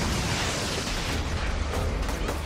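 An explosion booms and roars.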